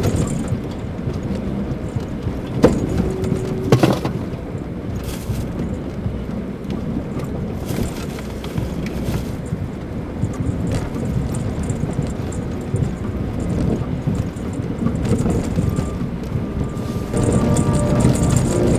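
Tyres crunch and rumble over a snowy dirt road.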